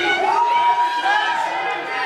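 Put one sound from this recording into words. A young man shouts.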